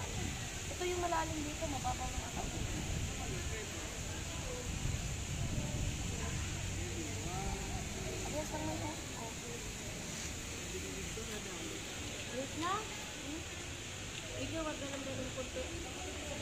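A woman talks casually nearby, outdoors.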